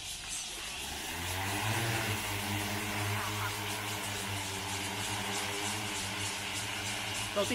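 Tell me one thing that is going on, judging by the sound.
A drone's rotors hum loudly and steadily.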